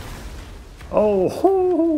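Flames burst and crackle.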